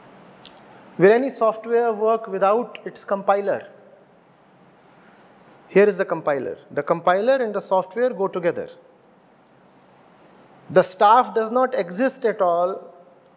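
A middle-aged man speaks calmly and thoughtfully into a close microphone, with long pauses.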